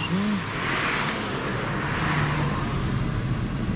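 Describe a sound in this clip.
Passing traffic swooshes by close outside.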